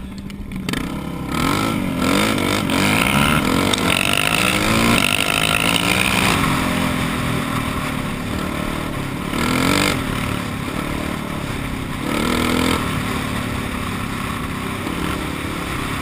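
Another dirt bike engine buzzes a short way ahead.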